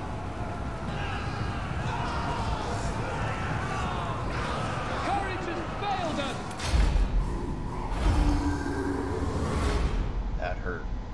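Weapons clash and rumble in a loud, busy battle.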